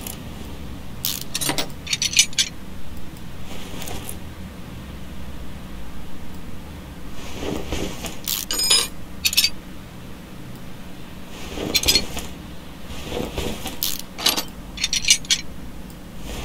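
A ratchet wrench clicks rapidly as bolts are unscrewed.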